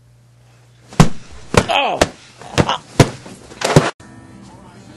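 A sleeping man is struck with a pillow, with loud thumps.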